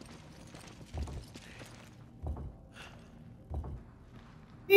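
A heavy stone mechanism clunks several times.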